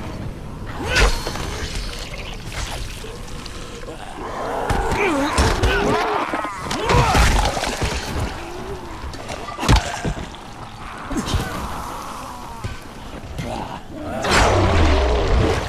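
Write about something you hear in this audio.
A blade strikes flesh with heavy wet thuds.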